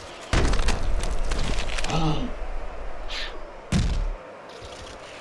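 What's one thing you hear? Heavy punches land with loud thuds.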